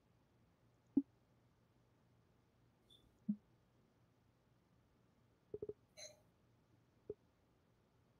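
Short soft electronic blips sound now and then.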